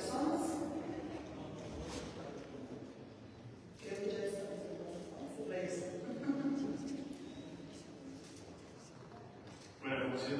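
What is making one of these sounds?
A speaker talks steadily through loudspeakers in a large echoing hall.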